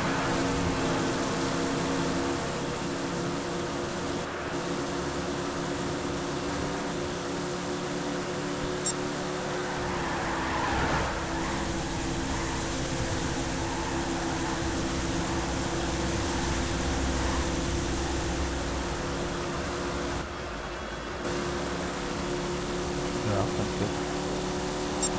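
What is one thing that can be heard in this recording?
A V8 stock car engine drones at full throttle.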